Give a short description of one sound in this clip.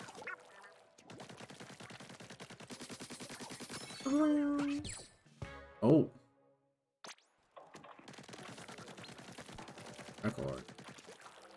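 An ink gun fires rapid splattering bursts.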